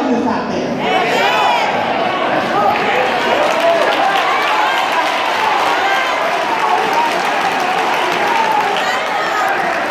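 A choir of young people sings together in a large echoing hall.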